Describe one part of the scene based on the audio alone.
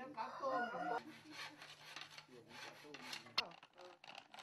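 A bow saw cuts through a wooden pole.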